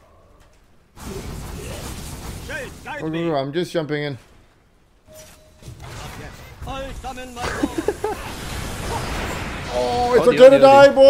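Magic blasts and clashing weapons crackle and burst in a fight.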